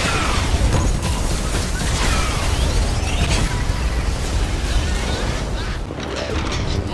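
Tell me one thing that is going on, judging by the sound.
A huge explosion booms and roars with a deep rumble.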